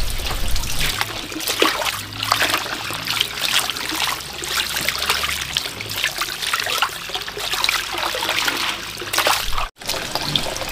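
Hands swish and splash through water in a tub.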